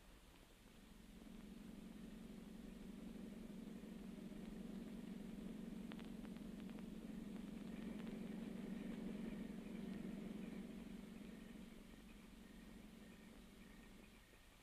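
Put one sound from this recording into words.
A car engine hums steadily nearby.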